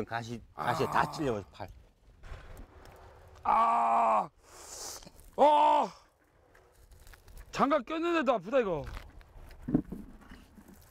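A man exclaims and talks with animation into a close microphone.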